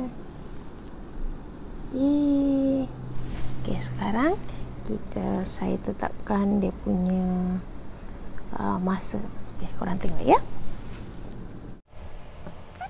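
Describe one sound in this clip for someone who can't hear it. A woman speaks with animation close to the microphone.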